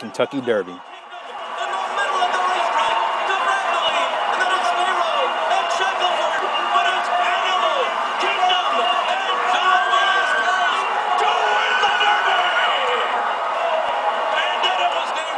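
A large crowd cheers and roars steadily, heard through a television speaker.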